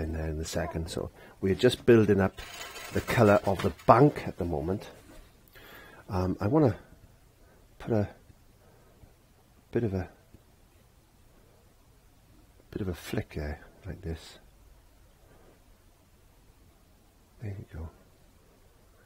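A man talks calmly close to a microphone, in short bursts with pauses.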